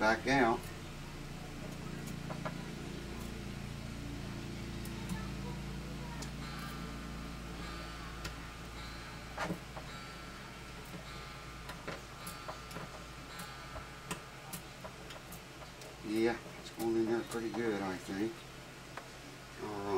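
Small plastic pins click and tap against a guitar's wooden top.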